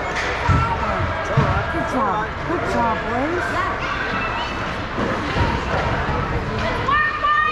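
Young children shout and call out across an echoing rink.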